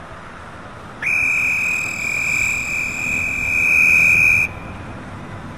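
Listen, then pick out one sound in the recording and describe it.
A megaphone gives a steady shrill beep.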